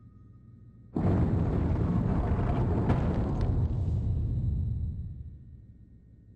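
A heavy stone wall rumbles as it slides open.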